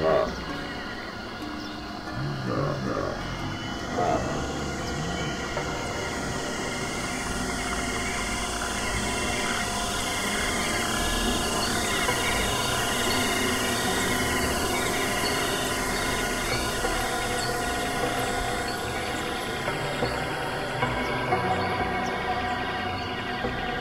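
Electronic music with layered, pulsing tones plays steadily.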